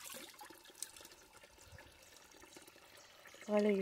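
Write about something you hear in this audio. Water pours from a pipe and splashes into a shallow pool.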